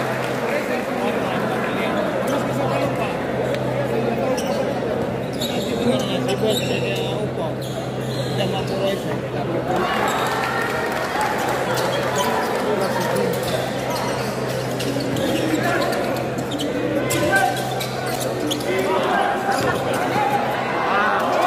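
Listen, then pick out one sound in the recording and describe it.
A large crowd murmurs and cheers in a big echoing gym.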